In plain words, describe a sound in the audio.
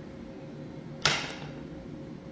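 A tool taps once against a board.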